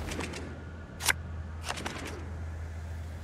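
Playing cards swish and snap as they are dealt.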